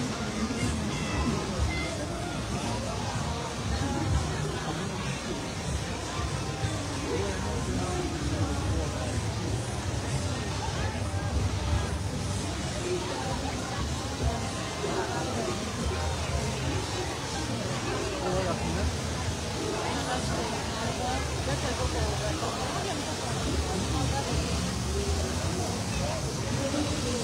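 A crowd murmurs at a distance.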